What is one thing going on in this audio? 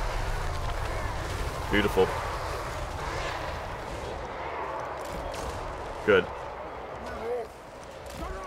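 A large battle rages with a steady din of clashing troops.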